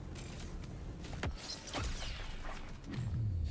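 Video game weapons fire and blast.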